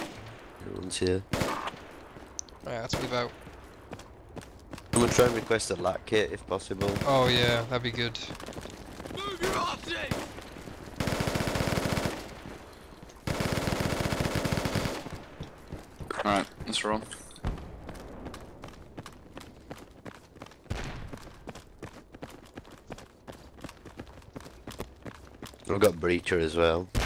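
Footsteps crunch steadily on dry dirt.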